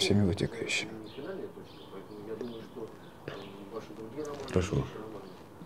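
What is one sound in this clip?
A man speaks calmly in reply, close by.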